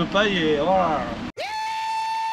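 A man talks and laughs with animation close by.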